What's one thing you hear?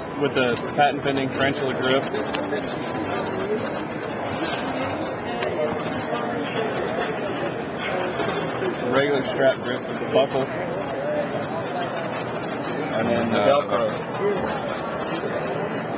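Hands rustle padded straps and clink small metal buckles close by.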